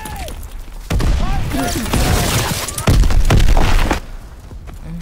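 Gunshots and blasts boom close by.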